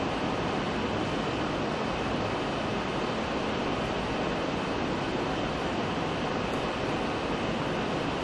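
A man speaks steadily through a loudspeaker in a large echoing hall.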